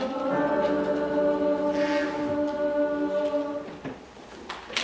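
A large choir sings a long, held chord in a big hall.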